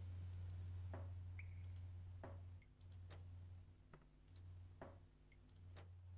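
Knocks sound on a wooden door.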